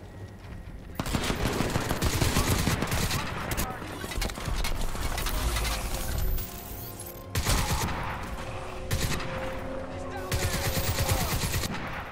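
Gunfire rattles in rapid bursts nearby.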